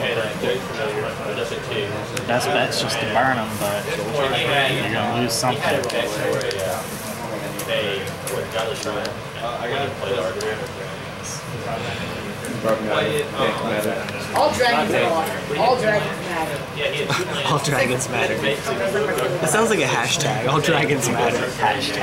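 Playing cards tap and slide on a soft tabletop mat.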